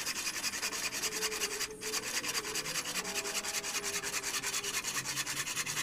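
A hand saw cuts quickly through wood with rapid rasping strokes.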